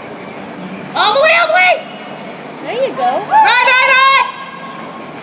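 A woman in a crowd shouts and cheers loudly.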